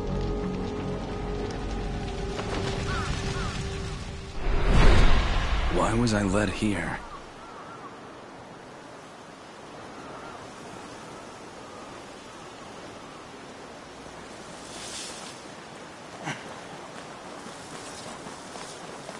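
A crow caws.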